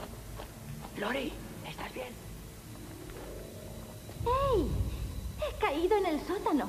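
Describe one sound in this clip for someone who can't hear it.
A young woman cries out in fear.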